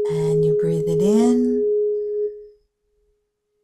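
An older woman speaks over an online call.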